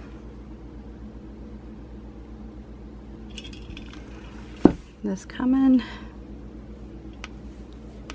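A paintbrush brushes softly against glass.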